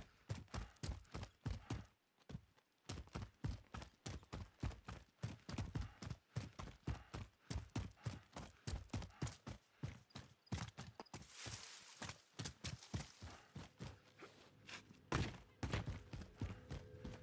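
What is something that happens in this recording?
Quick footsteps run over ground and gravel at a steady pace.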